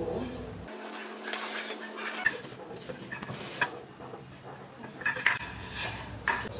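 Wooden poles knock and clatter on a hard floor.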